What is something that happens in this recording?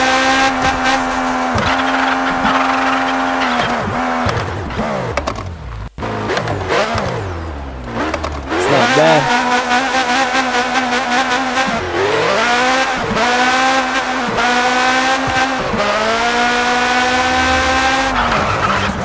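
A car engine revs high and drops as gears shift.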